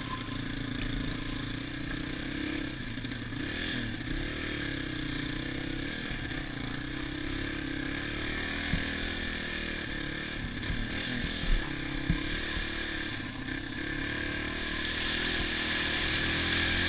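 A dirt bike engine buzzes steadily up close, rising and falling in pitch.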